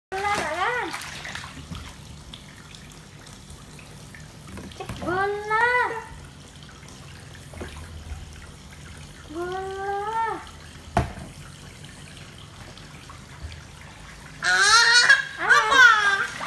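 A toddler babbles and squeals loudly close by.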